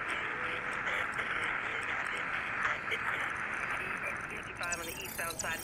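A warbling electronic signal hums steadily.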